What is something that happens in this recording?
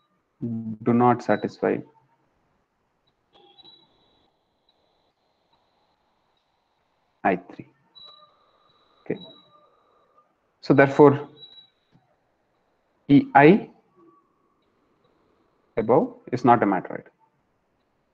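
A young man speaks calmly in short phrases over an online call, with pauses between them.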